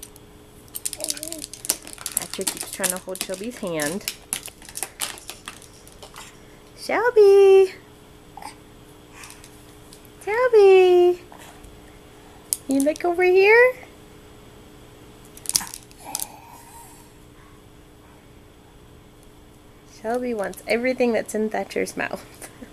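A baby squeals and babbles loudly close by.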